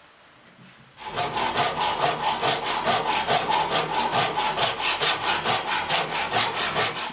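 A hand saw cuts through wood with quick, rhythmic strokes.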